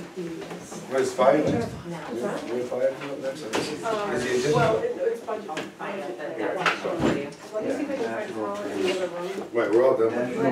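Several people talk over one another in the room.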